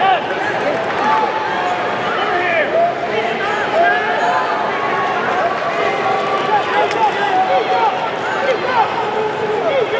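A crowd of spectators murmurs and shouts in a large echoing arena.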